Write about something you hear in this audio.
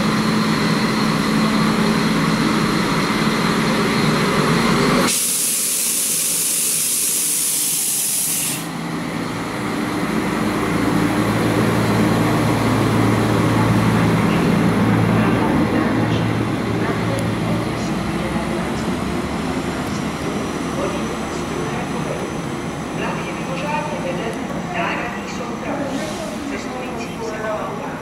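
A diesel train engine rumbles as a train rolls slowly by.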